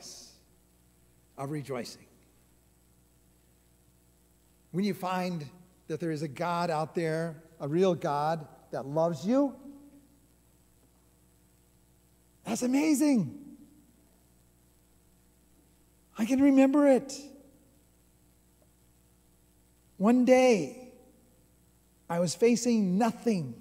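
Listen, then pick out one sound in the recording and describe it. An elderly man speaks with emphasis into a microphone, in bursts with pauses.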